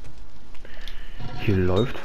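A fire crackles in a forge.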